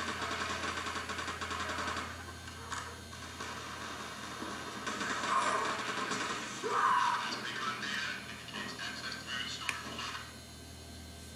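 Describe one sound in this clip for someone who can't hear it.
Video game gunfire and blasts play loudly through speakers.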